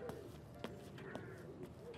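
Footsteps tap across a floor.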